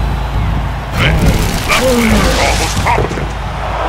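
A huge creature growls and roars.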